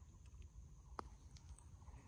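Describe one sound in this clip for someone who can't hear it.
A golf putter taps a ball softly.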